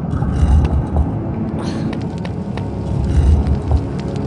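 Footsteps tap on a stone floor in an echoing hall.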